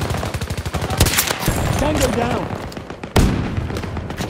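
A rifle fires a loud, sharp shot.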